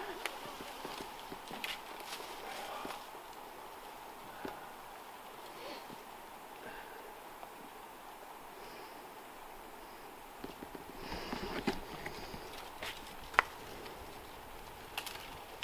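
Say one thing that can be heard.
Branches creak and rustle as a climber moves through a tree.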